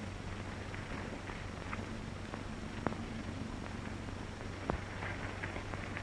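Footsteps crunch on dirt outdoors.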